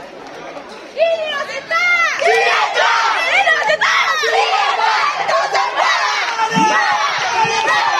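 Young girls scream and cheer excitedly close by.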